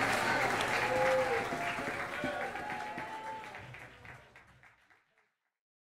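A live band plays with guitars, drums and keyboards, then fades out.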